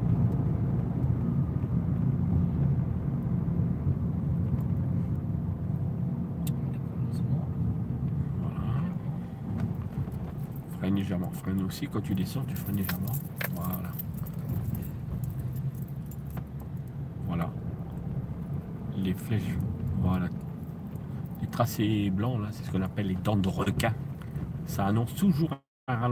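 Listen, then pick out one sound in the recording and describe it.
A car engine hums steadily as the car drives along a street.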